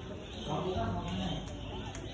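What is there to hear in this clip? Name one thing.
A crowd of people murmurs nearby.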